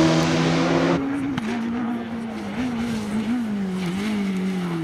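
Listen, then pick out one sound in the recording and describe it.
A second rally car races past.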